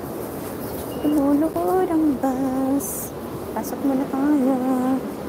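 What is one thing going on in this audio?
An elderly woman speaks nearby.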